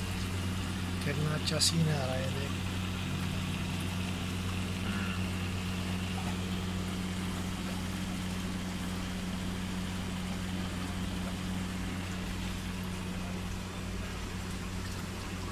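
A pump hums steadily.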